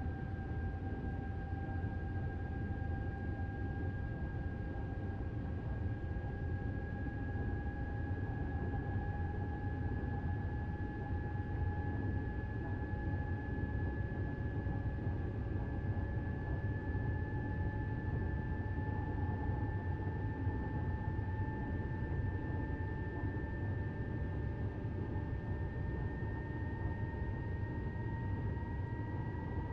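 An electric train rumbles steadily along the rails.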